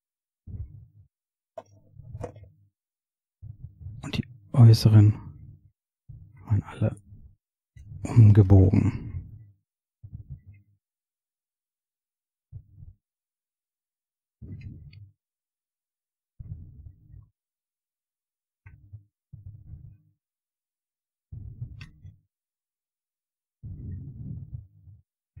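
Thin wires rustle and scrape close by as hands handle them.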